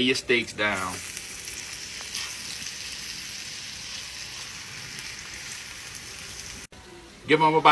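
Meat sizzles in a hot pan.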